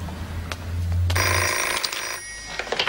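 A telephone rings loudly.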